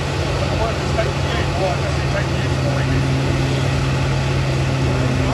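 Tyres screech as they spin on the track.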